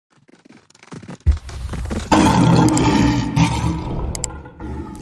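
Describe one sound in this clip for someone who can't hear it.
A fireball roars and whooshes past.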